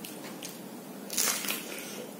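A man crunches loudly on crisp food close to a microphone.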